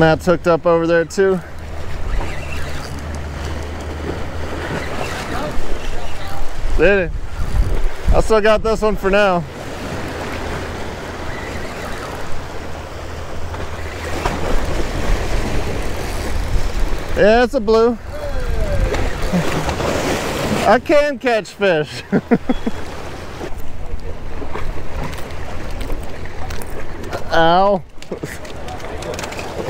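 Small waves splash against rocks.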